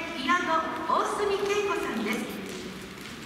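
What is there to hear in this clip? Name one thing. An ensemble of instruments plays a final phrase in a large hall.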